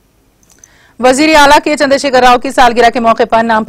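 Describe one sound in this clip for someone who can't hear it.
A woman reads out the news clearly through a microphone.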